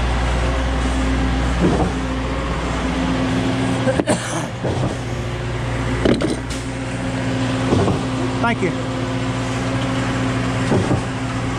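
A mixer drum churns concrete.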